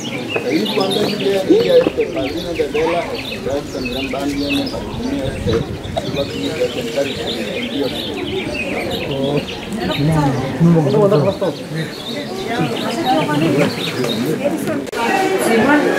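A crowd of men and women chat outdoors nearby.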